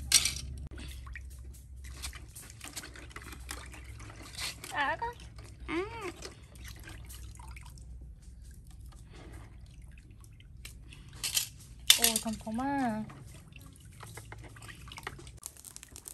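Water splashes and sloshes as hands wash shellfish in a basin.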